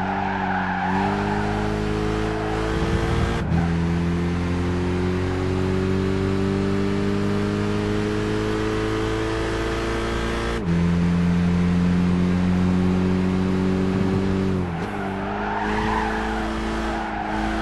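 Tyres squeal as a car brakes into a corner.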